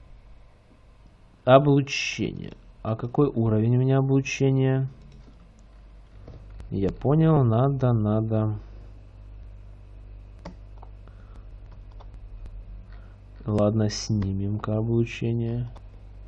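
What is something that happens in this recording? Interface buttons click softly.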